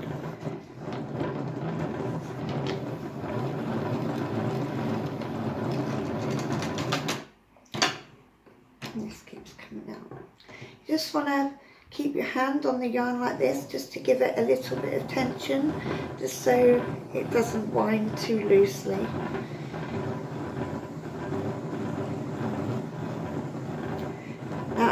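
A hand-cranked yarn winder whirs and rattles steadily.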